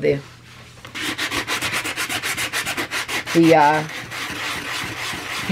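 A sanding block rubs back and forth against card with a rough, rhythmic scratching.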